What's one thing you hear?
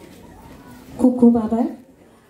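A woman speaks through a loudspeaker in a large hall.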